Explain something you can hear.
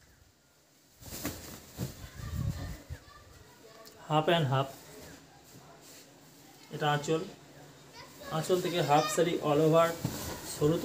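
Cloth rustles and flaps as it is handled.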